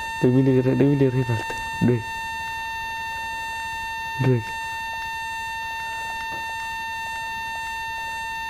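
Footsteps crunch softly in snow.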